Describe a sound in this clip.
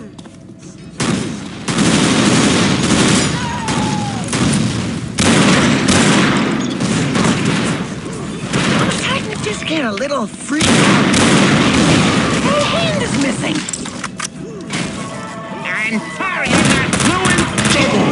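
Automatic gunfire rattles loudly in rapid bursts.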